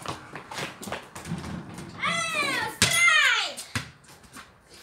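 A ball thumps against a wall and bounces on concrete.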